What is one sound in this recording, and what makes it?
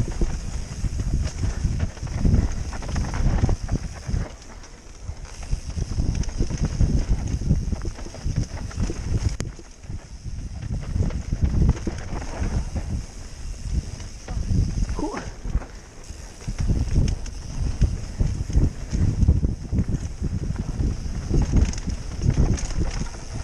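Bicycle tyres rumble and rattle over a bumpy dirt trail.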